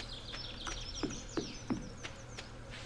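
Footsteps knock on a wooden bridge.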